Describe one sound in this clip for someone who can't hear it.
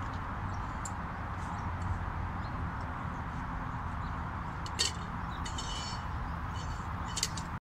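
Bottles clink and knock together as they are tossed and caught.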